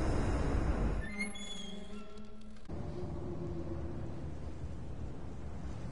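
A man laughs through a headset microphone.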